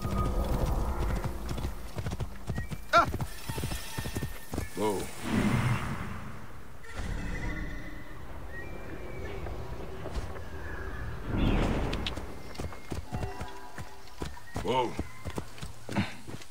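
Horse hooves clop on dirt.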